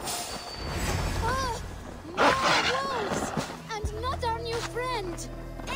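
A wolf snarls and howls.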